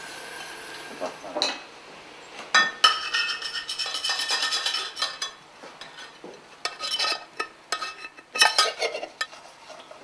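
A hand scrubs the inside of a metal pot.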